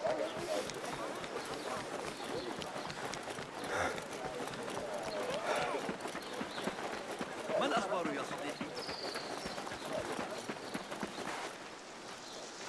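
Footsteps run quickly over packed dirt.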